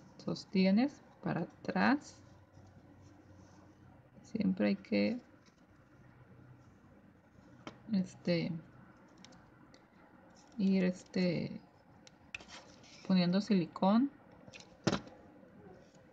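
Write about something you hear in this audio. Fabric ribbon rustles softly as fingers twist and fold it.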